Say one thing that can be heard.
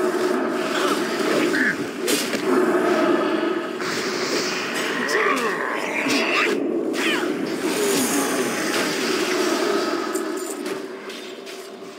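Spells crackle and weapons clash in a fight.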